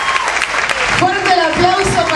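A young woman sings loudly into a microphone.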